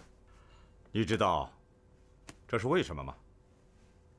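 A younger man asks a question calmly.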